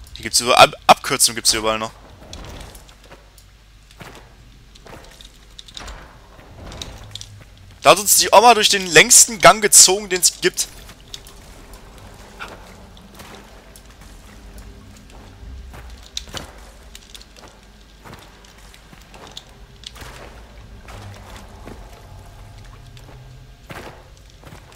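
Footsteps clank on a stone floor.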